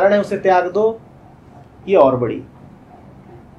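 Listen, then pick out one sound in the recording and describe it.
A man speaks calmly and close to a microphone in short phrases.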